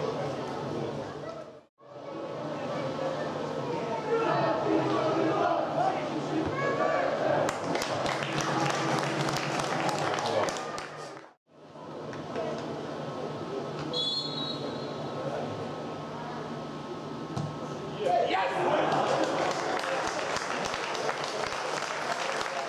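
Football players shout to each other outdoors on an open pitch.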